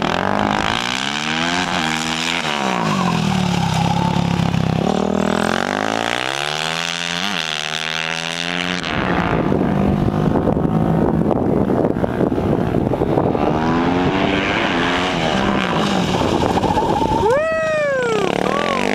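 A motorcycle engine revs up and down as the bike speeds and slows through turns.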